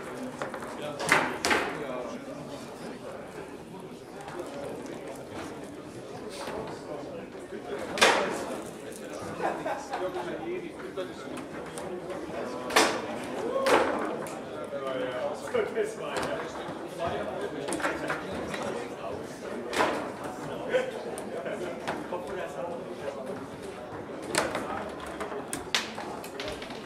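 Foosball rods clatter and the ball cracks sharply against the table walls.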